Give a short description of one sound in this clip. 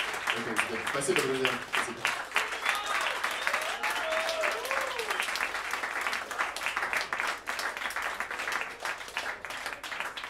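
A crowd claps steadily.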